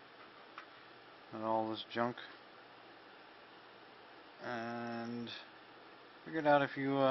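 Small plastic and metal parts click softly as hands handle them.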